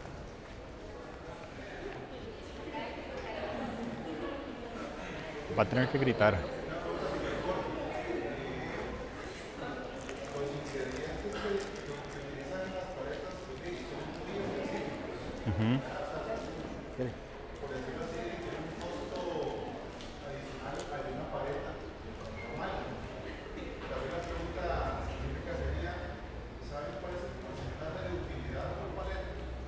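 A man speaks calmly to an audience in a large echoing hall.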